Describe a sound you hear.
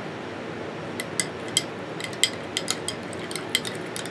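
A spoon scrapes and clicks inside a glass jar.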